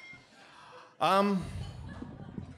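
A man sings a loud, short, wavering note into a microphone.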